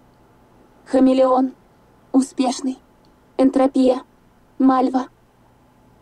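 A computer terminal gives a series of short electronic beeps.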